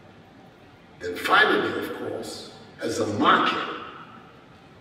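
An elderly man speaks slowly and formally through a microphone in a large echoing hall.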